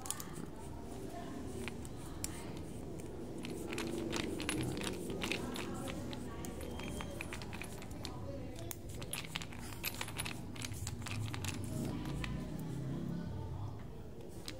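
A ratchet screwdriver clicks rapidly as its handle is twisted back and forth close by.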